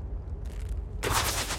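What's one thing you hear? A fiery magic blast whooshes and crackles.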